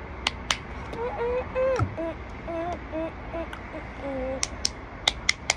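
A boy speaks quietly, close by.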